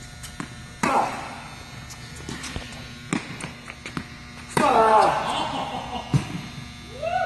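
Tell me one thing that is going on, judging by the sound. A tennis ball is struck hard with a racket, echoing in a large hall.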